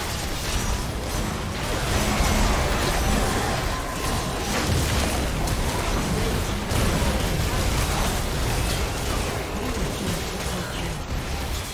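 Magic blasts, zaps and impacts crackle and boom in a busy fight.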